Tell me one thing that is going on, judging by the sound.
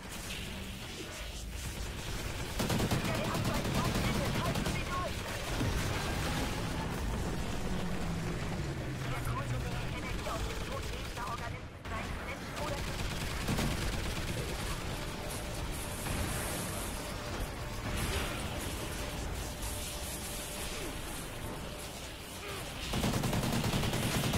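Gunfire from a game rifle rattles in rapid bursts.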